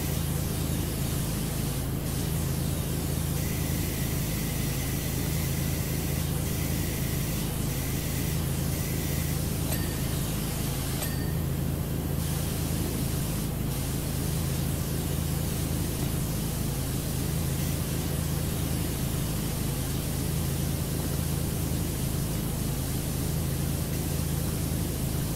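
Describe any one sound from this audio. A pressure washer sprays a steady, hissing jet of water.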